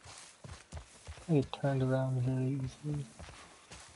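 Tall grass and bushes rustle as someone pushes through.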